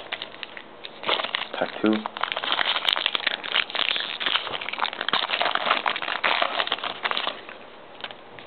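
Plastic card wrappers crinkle and rustle close by.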